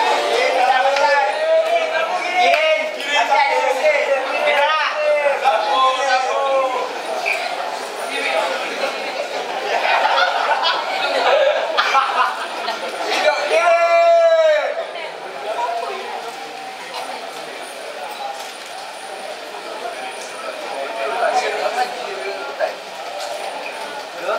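Sound from a film plays through loudspeakers in a large echoing hall.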